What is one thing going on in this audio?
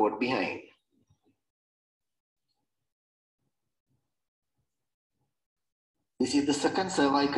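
A man speaks calmly in a lecturing tone over an online call.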